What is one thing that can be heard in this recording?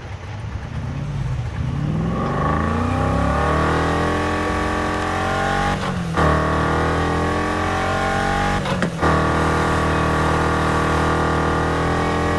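A car engine revs up and roars loudly, shifting gears as the car speeds away.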